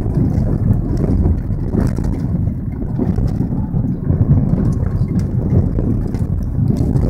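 Tyres crunch and rumble over a gravel road.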